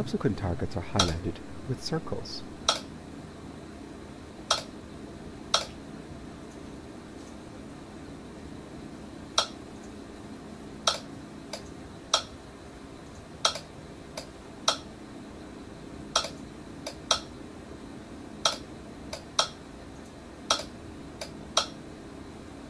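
A button on a handheld controller clicks sharply, again and again.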